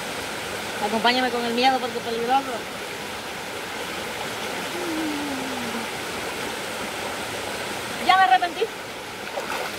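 Water splashes as a young woman wades through a stream.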